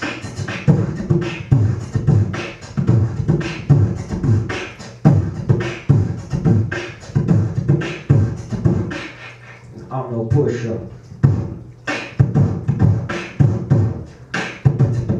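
A young man beatboxes into a microphone held close to his mouth, with rapid bass thumps and sharp clicks.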